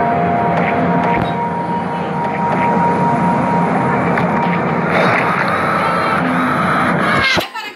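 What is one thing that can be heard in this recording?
Upbeat electronic game music plays steadily, then cuts off abruptly.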